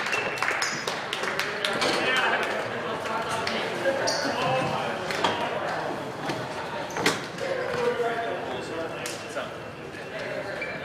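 Young men's voices chatter and call out in a large echoing gym.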